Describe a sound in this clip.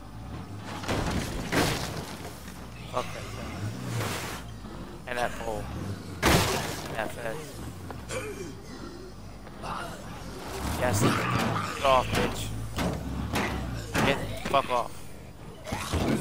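A vehicle crashes and thumps against objects.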